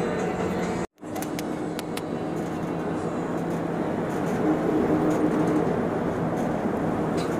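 An engine hums steadily inside a moving vehicle.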